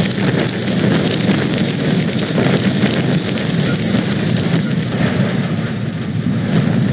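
Crumpled metal scrapes and grinds as a car is pushed.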